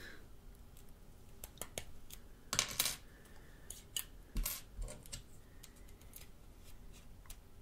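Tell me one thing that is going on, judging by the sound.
A small metal tray clicks and taps against a phone.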